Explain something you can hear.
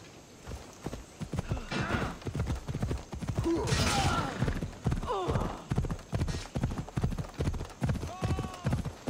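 A horse gallops with steady, rhythmic hoofbeats.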